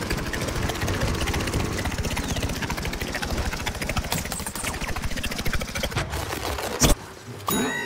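A propeller whirs with a rapid, steady chopping.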